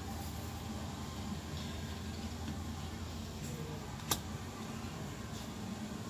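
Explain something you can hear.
Playing cards slide and rustle on a glass tabletop.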